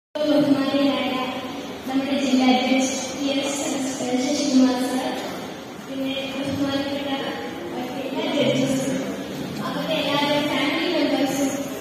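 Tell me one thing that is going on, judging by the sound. A young woman sings into a microphone through loudspeakers in a large echoing hall.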